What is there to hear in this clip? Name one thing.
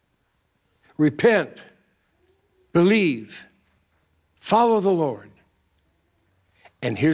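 An older man preaches with animation into a microphone, in short emphatic phrases.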